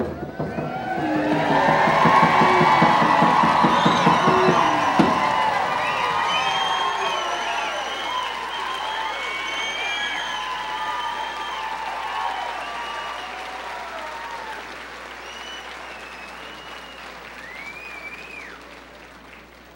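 A large audience applauds and cheers in an echoing hall, slowly fading.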